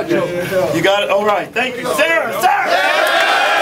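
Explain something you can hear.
A middle-aged man speaks loudly with animation to a group close by.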